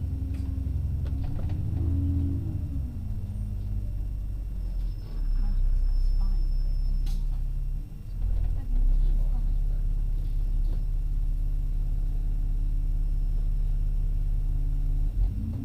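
Cars drive slowly along a road, their engines rumbling closer.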